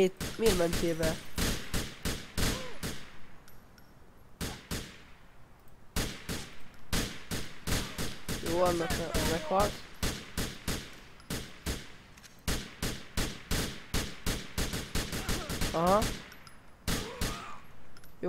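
Gunshots fire in rapid bursts.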